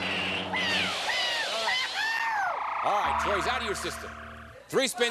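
Electronic sound effects warble, zap and swoop up and down.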